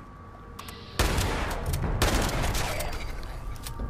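A shotgun fires loud blasts that ring out in an echoing space.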